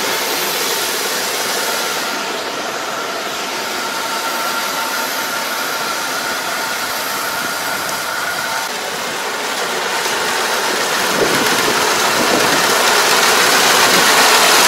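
A combine harvester engine hums steadily in the distance and grows louder as it approaches.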